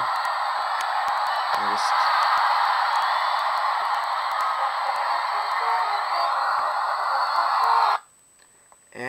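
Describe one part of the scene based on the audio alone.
Sound plays through a small phone speaker.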